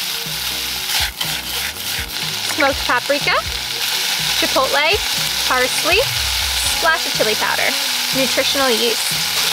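A spoon scrapes and taps against a pan.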